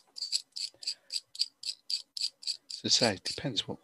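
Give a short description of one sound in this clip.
A brush dabs quickly and rhythmically on paper.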